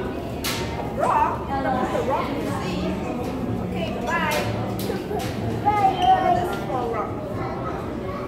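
A small boy laughs and squeals with delight close by.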